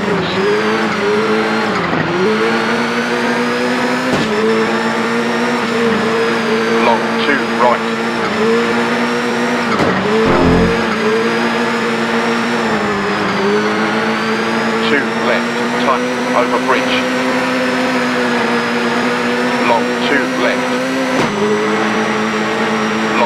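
Tyres hiss and skid over snow.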